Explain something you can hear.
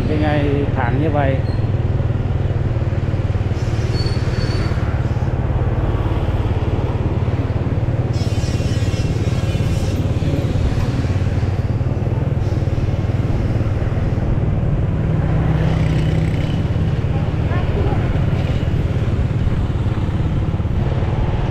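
Motorbike engines hum as they pass by on a street.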